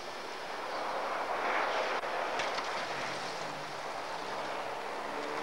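Tyres hiss and crunch over snow as the car slides sideways.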